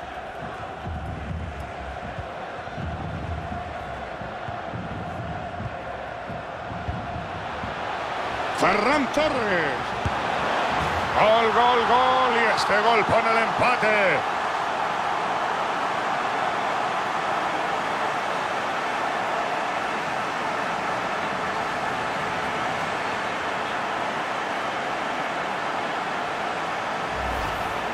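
A large crowd roars in a stadium, swelling into loud cheering.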